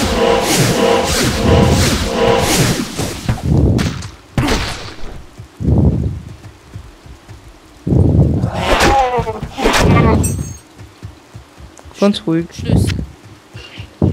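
Video game magic spells burst and crackle during a fight.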